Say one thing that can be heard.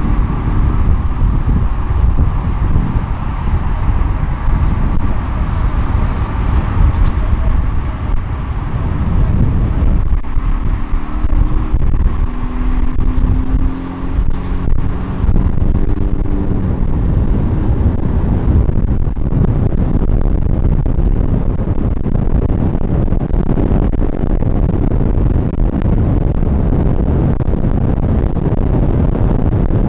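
A car engine hums as it drives along a road.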